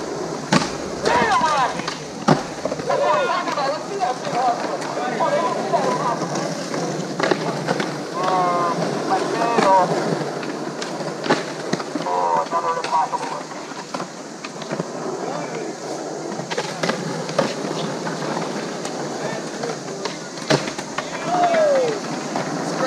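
Children shout and call out in the distance outdoors.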